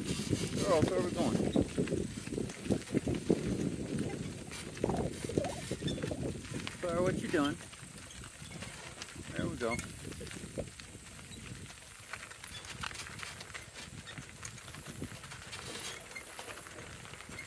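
Hooves clop steadily on a gravel road.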